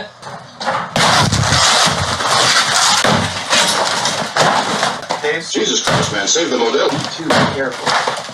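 A wall crashes down with plaster tumbling loudly.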